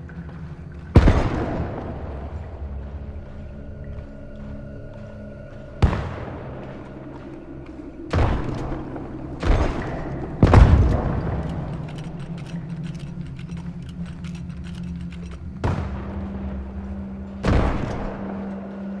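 A revolver fires loud shots that echo outdoors, several times.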